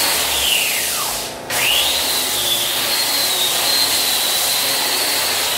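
A handheld power sander whines as it grinds across a wooden floor.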